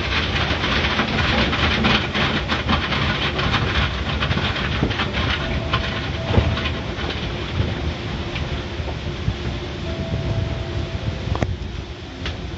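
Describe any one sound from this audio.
Big rotating brushes slap and rumble across a car's body.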